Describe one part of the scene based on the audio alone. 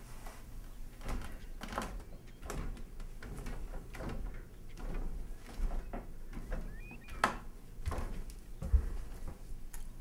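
Footsteps thud on stairs.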